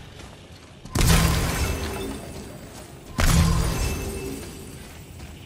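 Clay pots shatter with loud crashes.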